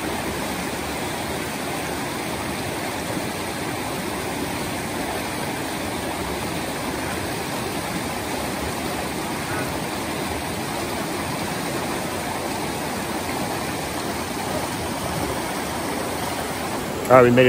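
A fast stream rushes and gurgles over rocks close by.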